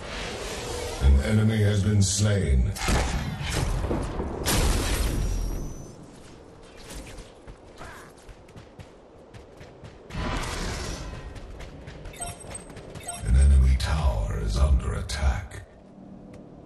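Weapons strike and whoosh in a loud fight.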